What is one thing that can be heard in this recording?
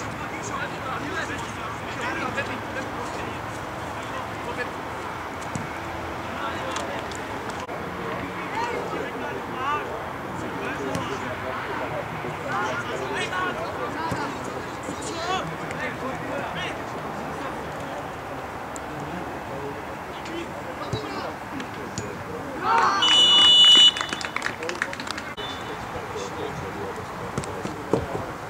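Football players shout to one another across an open field.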